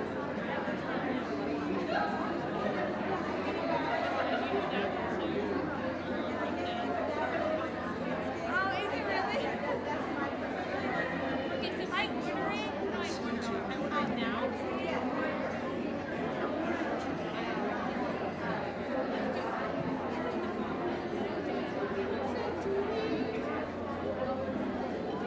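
A crowd of men and women chatters steadily in a large echoing hall.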